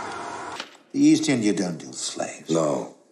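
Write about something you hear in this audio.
An elderly man speaks sternly and clearly up close.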